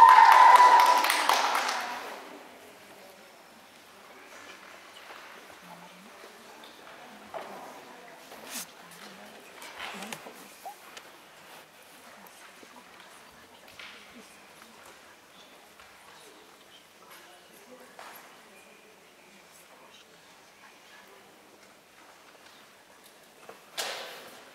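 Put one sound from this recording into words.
A gymnast's feet pad and thump softly on a mat in a large, quiet echoing hall.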